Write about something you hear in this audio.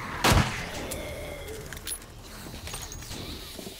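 A pistol clicks and clacks as it is reloaded.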